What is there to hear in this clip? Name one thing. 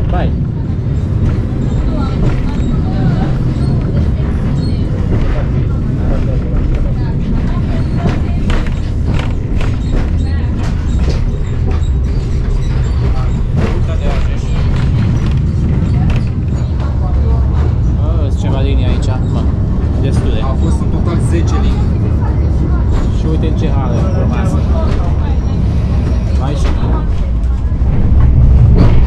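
Train wheels clatter and click over rail joints.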